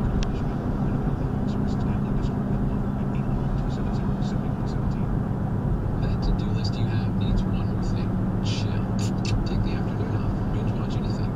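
A car's engine hums steadily while driving.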